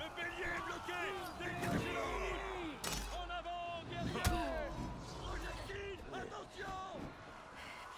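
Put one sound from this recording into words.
Metal swords clash and ring sharply.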